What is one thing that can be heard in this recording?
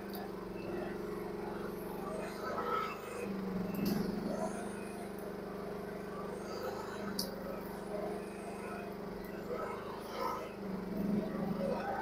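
A small excavator's diesel engine runs with a steady hum close by.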